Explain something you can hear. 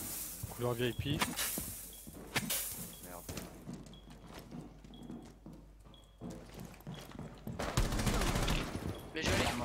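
Rapid gunfire cracks in short bursts.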